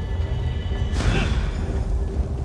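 A shimmering whoosh sweeps up briefly.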